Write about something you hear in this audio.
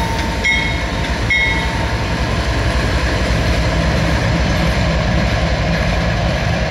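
Train wheels roll and clatter over the rails.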